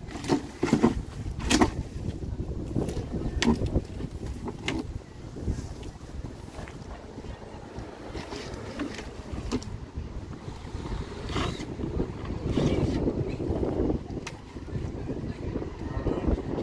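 A wooden window frame knocks and scrapes against a house wall.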